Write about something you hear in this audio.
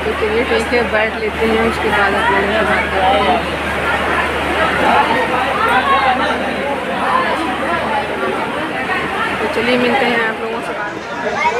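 Many people chatter in an echoing crowd.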